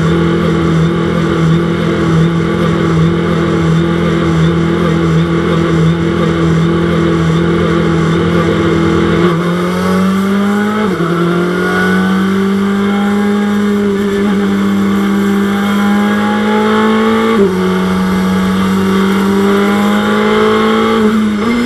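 A race car engine roars steadily, then revs up through gear shifts.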